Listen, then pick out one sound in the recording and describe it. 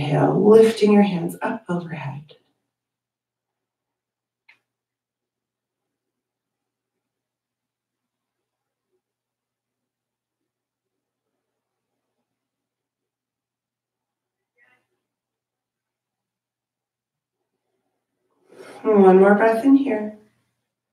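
A woman speaks calmly into a headset microphone, close by.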